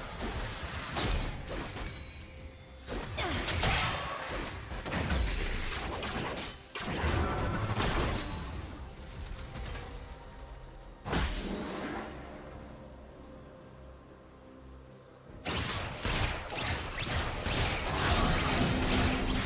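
Game spell effects whoosh, crackle and clash in a fight.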